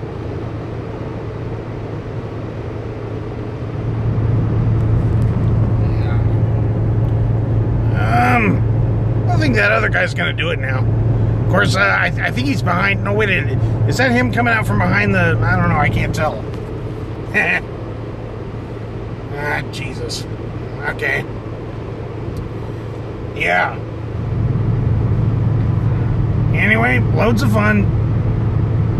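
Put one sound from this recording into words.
A car engine hums steadily while driving, growing louder at times.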